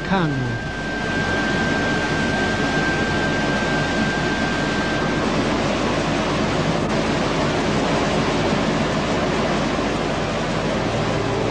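A waterfall roars steadily nearby.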